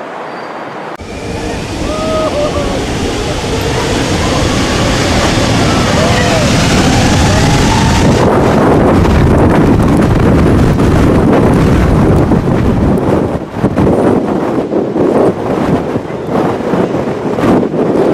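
A jet engine blasts with a deafening roar close by, buffeting the microphone with wind.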